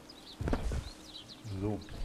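Footsteps thud on a dirt path.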